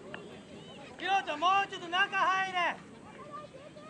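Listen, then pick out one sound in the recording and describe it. Young girls shout and cheer loudly outdoors.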